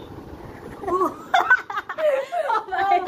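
Two young women burst out laughing.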